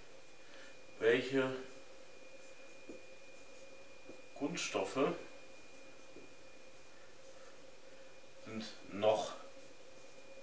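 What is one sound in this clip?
A man speaks briefly in short phrases, close by.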